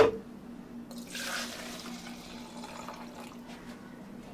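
Milk pours into plastic cups.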